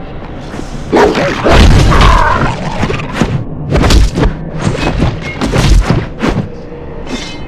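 Weapons strike and clash in a short fight.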